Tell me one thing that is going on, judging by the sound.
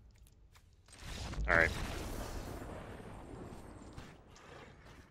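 A deep, swelling whoosh of a game effect rises and slowly fades.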